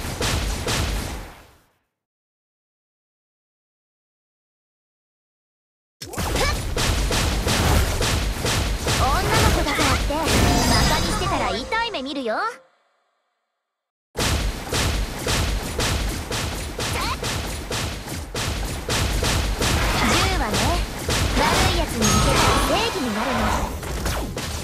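Video game fight effects crackle with rapid strikes and bursts.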